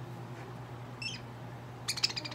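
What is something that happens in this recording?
A small parakeet chirps sharply close by.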